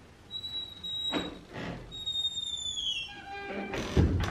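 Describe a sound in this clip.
A wooden door creaks as it swings shut.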